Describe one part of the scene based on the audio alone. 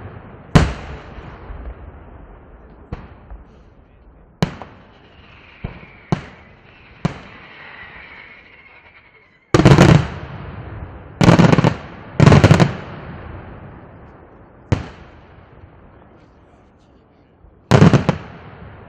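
Fireworks burst with loud, sharp bangs outdoors.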